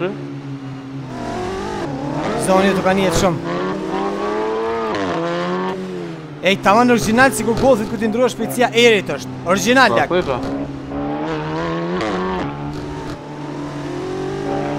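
A car engine revs up and down as gears shift.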